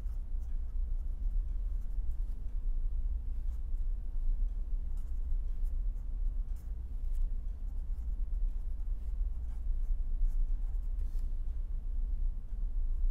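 A marker pen squeaks and scratches on paper in short strokes.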